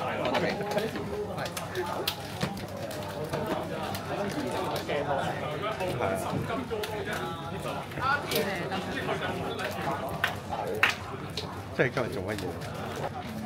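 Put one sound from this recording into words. Playing cards rustle as they are shuffled by hand.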